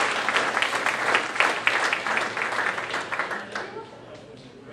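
An audience claps loudly in a large echoing hall.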